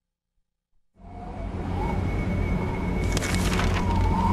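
Wind gusts loudly.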